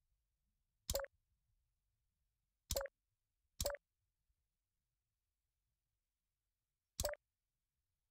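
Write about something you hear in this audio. A short, sharp click sounds each time a beam snaps into place.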